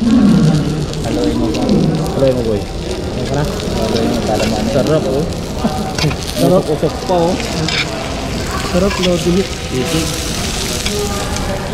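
A sizzling plate of food hisses and crackles.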